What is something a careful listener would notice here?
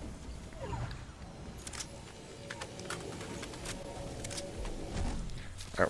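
Quick footsteps patter on grass and dirt as a figure runs.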